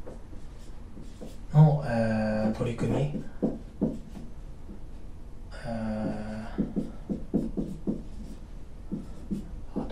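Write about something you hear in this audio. A marker squeaks and scratches on a whiteboard.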